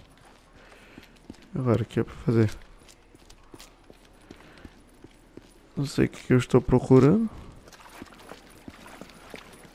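Footsteps crunch slowly on rocky ground.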